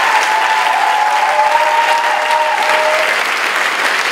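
A girls' choir cheers and shouts with excitement.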